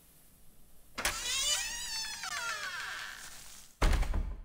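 A wooden door creaks open slowly.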